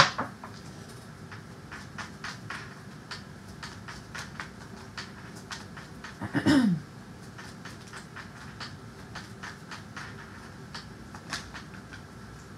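Playing cards riffle and flutter as they are shuffled by hand.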